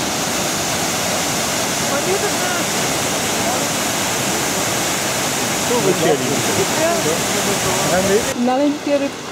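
A large waterfall roars.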